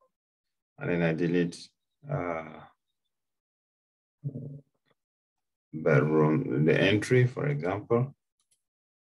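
A man speaks calmly into a microphone, explaining.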